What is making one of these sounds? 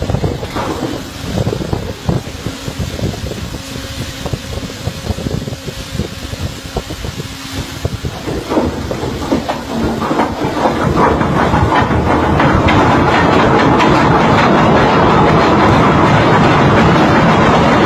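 A heavy steel anchor chain clanks and rattles as it runs out over a windlass.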